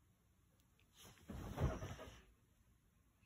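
A child flops onto a bed with a soft thump and rustle.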